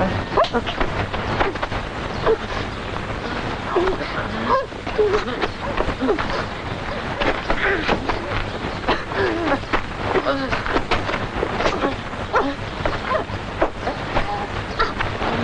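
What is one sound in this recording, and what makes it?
Two boys scuffle and grapple.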